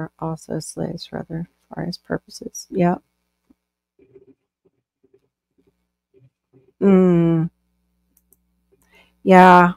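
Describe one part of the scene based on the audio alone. A middle-aged woman talks with animation over an online call.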